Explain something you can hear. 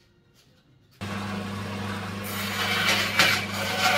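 A band saw motor hums and whirs loudly.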